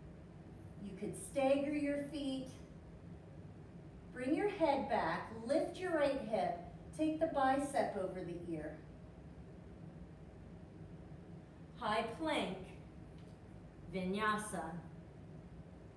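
A young woman speaks calmly, as if giving instructions, close by.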